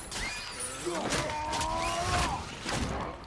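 An icy blast bursts with a sharp whoosh.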